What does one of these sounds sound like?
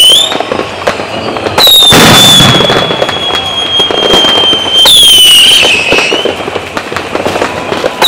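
Fireworks bang and crackle.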